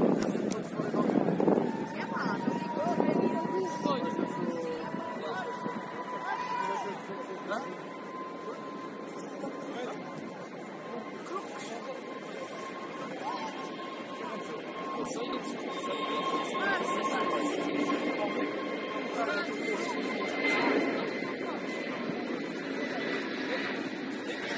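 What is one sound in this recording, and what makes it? Men talk and call out across an open outdoor pitch, heard from a distance.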